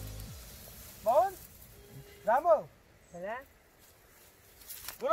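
Dry hay rustles as it is handled.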